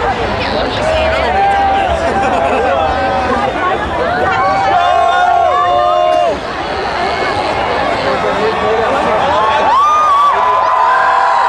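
Men and women in a crowd cheer and whoop excitedly.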